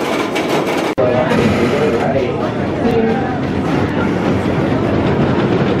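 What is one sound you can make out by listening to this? Riders on a roller coaster shout and cheer.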